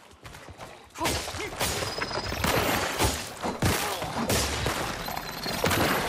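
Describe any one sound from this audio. A fierce melee fight erupts with rapid clashing blows.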